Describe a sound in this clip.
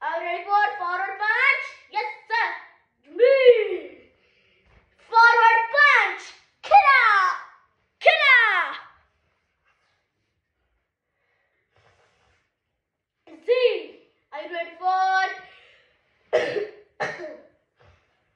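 A young boy shouts loudly and sharply, close by.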